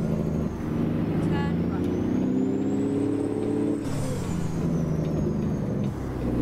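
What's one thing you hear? A truck engine rumbles steadily, rising and falling in pitch as the gears change.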